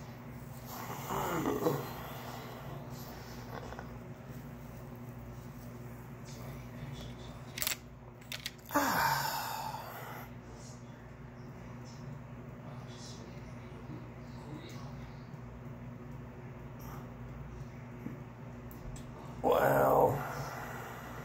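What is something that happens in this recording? A man groans in pain close by.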